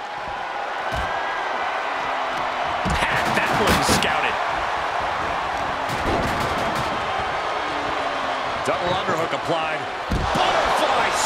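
Heavy thuds of bodies slamming onto a wrestling ring ring out several times.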